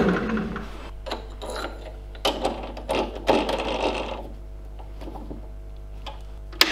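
A chuck key clicks and rattles in a metal lathe chuck.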